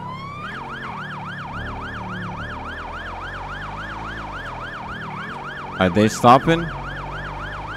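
A police siren yelps rapidly and steadily.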